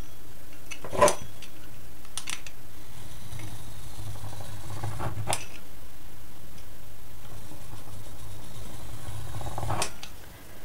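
A knife cuts through soft dough.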